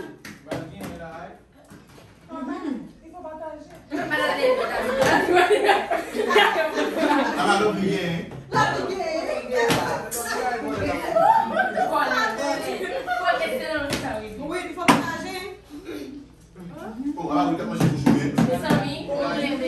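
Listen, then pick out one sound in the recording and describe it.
Several young women and men talk and laugh excitedly nearby.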